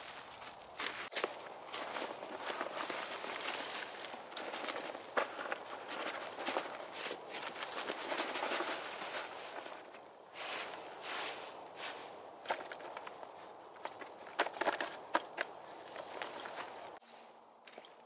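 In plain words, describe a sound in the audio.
Leaves rustle and scatter as a man tips them from a bag onto a roof.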